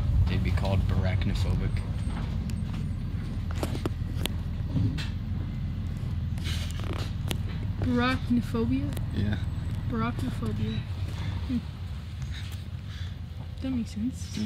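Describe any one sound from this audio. A teenage boy talks and laughs close by.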